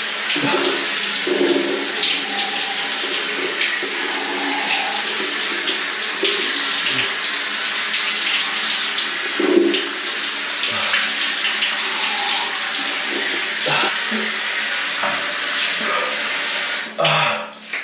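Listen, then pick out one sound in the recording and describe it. Shower water sprays and splashes steadily.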